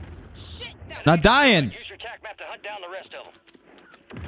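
A young man shouts excitedly into a microphone.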